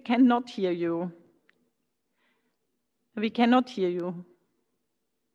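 A woman speaks calmly in short phrases over an online call.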